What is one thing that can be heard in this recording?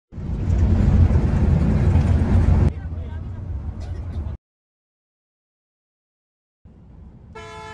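A bus engine rumbles low and steady while driving on a road.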